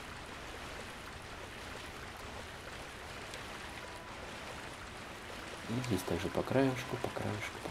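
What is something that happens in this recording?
Water splashes as footsteps wade through it.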